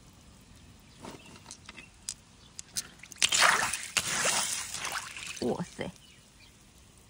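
A hand splashes and rummages through wet pebbles in shallow water.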